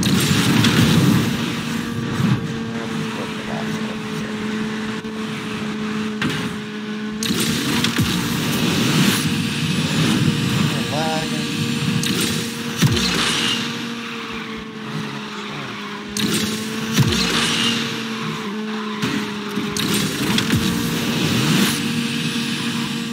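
A racing car engine roars at high speed.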